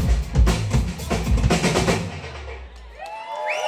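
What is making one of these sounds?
A band plays loud live music with pounding drums and bass.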